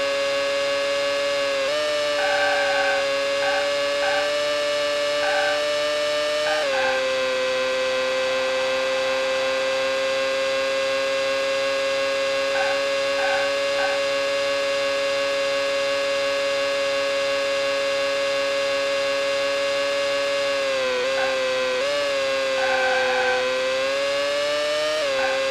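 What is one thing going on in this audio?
A racing car engine drones with a high, steady whine that dips and jumps at gear changes.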